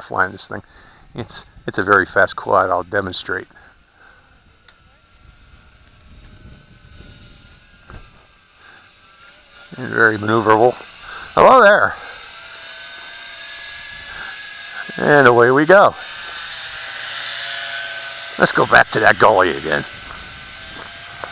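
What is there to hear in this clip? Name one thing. A drone's motors whine steadily.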